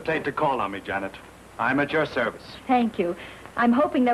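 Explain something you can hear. A woman answers briefly.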